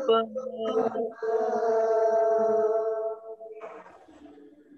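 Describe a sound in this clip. A man chants in a drawn-out voice through a microphone.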